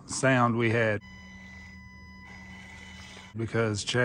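A small electric motor whines.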